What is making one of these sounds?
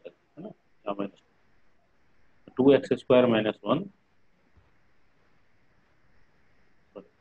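A man speaks calmly into a microphone in short bursts, as if explaining.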